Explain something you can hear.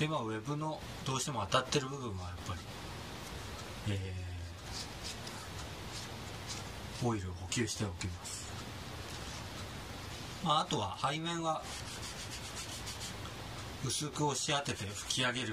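A cloth rubs against a leather glove.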